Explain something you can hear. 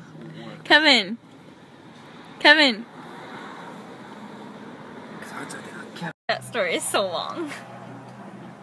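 A young woman squeals and laughs close by.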